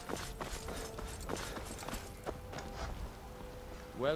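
Footsteps crunch on a stone path.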